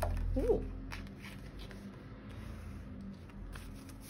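A card is laid down softly on a cloth surface.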